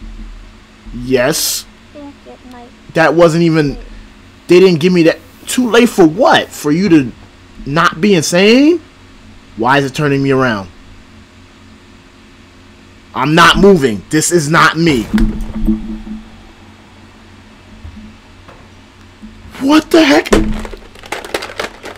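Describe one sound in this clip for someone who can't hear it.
A young man talks loudly and with animation into a microphone.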